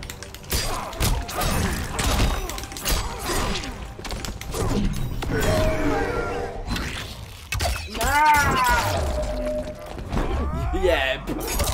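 Heavy punches and kicks thud and crack in a fighting game.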